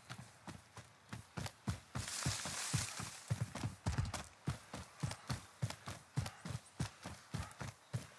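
Footsteps thud quickly through grass.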